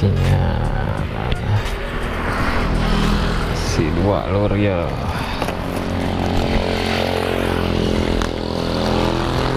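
A motorcycle passes close by with a rising and falling engine.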